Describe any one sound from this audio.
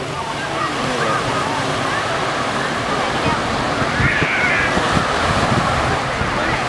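Many people in the water chatter and call out at a distance.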